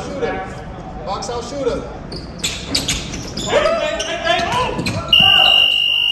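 Men shout and cheer in a large echoing hall.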